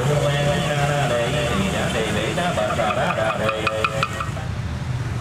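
A man chants steadily into a microphone, heard through a loudspeaker.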